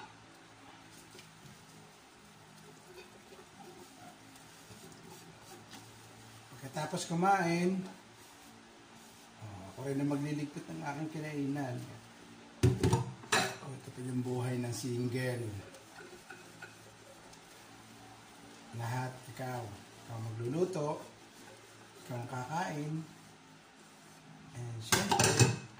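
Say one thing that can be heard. Dishes clink in a sink as they are washed.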